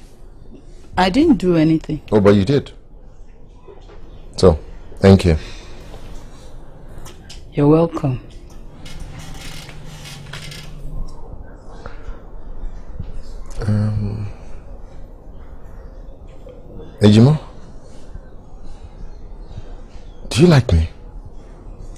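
A man speaks, close by.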